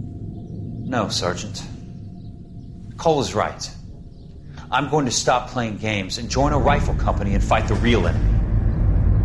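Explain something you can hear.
A young man answers firmly and at length.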